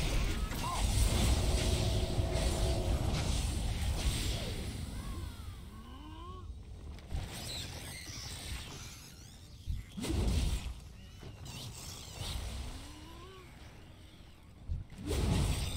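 Magic spells whoosh and crackle during a fight.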